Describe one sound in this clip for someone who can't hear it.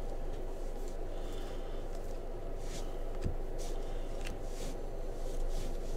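Stiff cards slide and rustle against each other in someone's hands.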